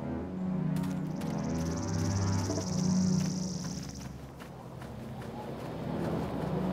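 Footsteps patter softly on grass.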